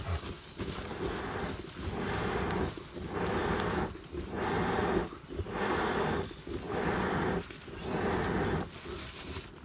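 Air is blown into a fire through a pipe in long, regular bursts.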